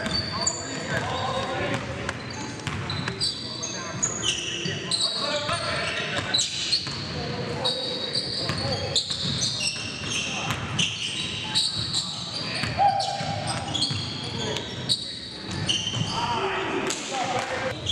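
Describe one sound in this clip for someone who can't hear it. Basketballs bounce on a hard gym floor.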